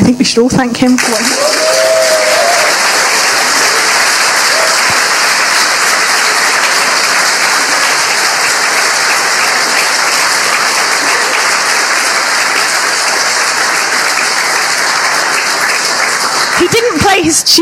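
A large crowd applauds loudly in a large room.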